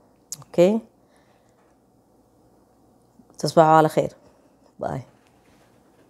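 A woman speaks calmly and close to a microphone, in short bursts with pauses.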